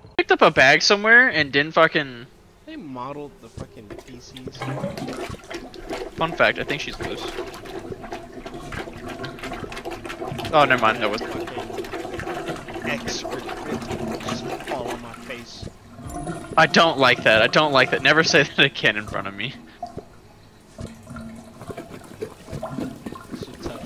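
A plunger squelches and sucks in a clogged toilet.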